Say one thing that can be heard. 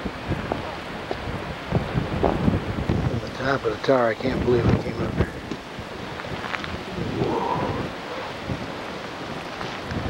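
Wind gusts and rumbles across an open outdoor space.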